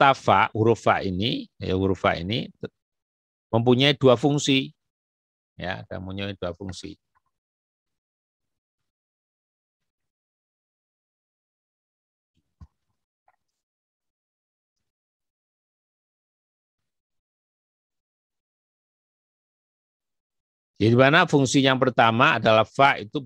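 A man speaks calmly into a microphone, with long pauses.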